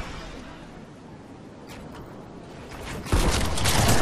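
A glider whooshes through the air in a video game.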